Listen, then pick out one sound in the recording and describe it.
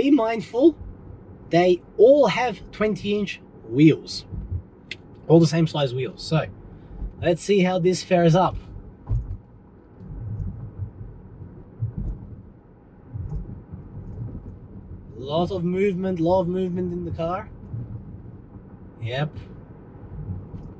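A car engine hums softly as the car drives.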